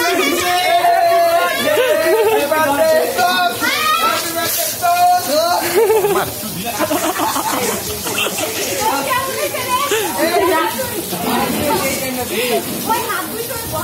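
Young men shout and laugh with excitement close by.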